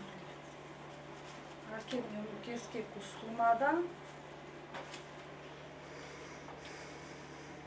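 Clothes rustle as a woman sorts through them.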